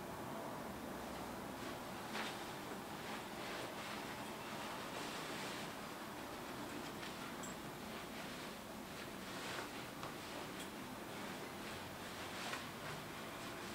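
Clothing rustles close by.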